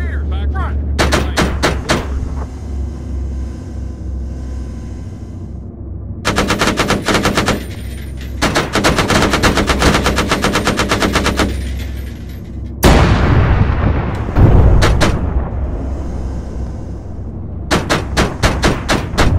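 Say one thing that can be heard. An autocannon fires in rapid bursts.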